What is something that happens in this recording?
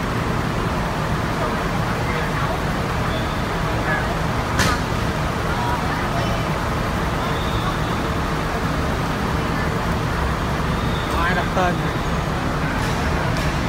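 A crowd of adults and children chatters nearby.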